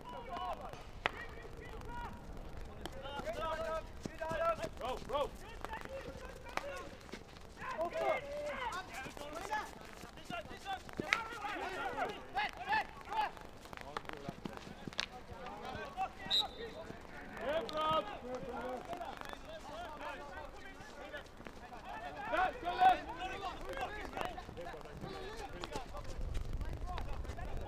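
Young men shout calls to each other across an open outdoor pitch.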